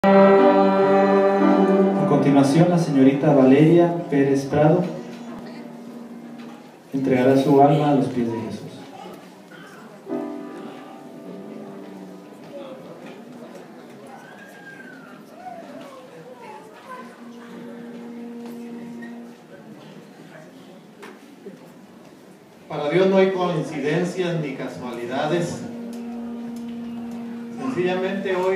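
A man speaks calmly through a microphone and loudspeaker in an echoing hall.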